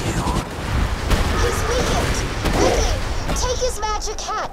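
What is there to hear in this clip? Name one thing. Gunfire rattles rapidly from a video game weapon.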